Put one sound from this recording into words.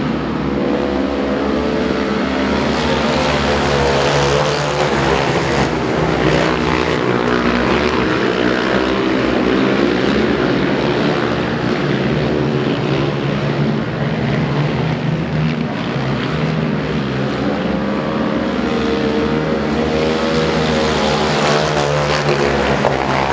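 Motorcycle engines roar loudly as the bikes race around the track.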